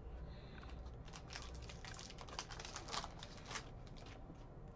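A foil wrapper crinkles and tears open close by.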